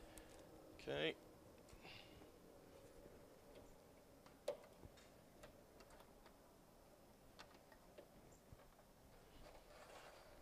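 Wires rustle and click as a man handles them.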